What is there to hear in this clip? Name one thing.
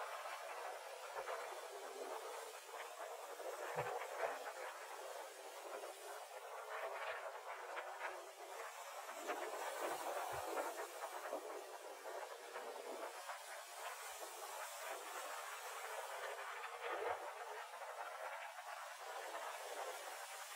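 Choppy waves splash and churn.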